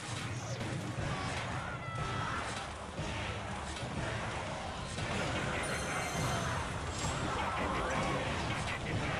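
Battle sound effects clash and burst.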